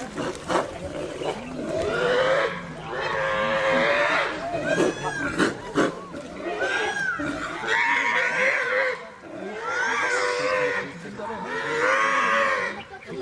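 A wild boar squeals loudly.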